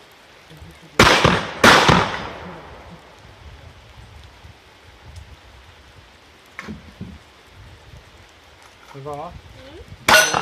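Gunshots crack loudly outdoors and echo away.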